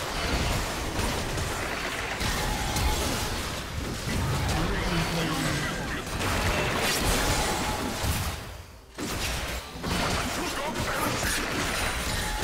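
Game spells and weapon hits crackle and clash in a busy fight.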